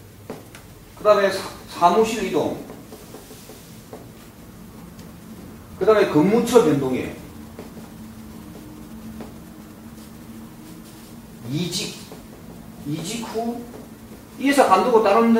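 A middle-aged man speaks calmly in bursts, close by.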